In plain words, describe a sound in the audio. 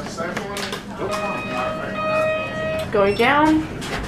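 An elevator beeps repeatedly.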